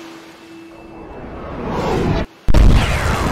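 A low rumble swells louder.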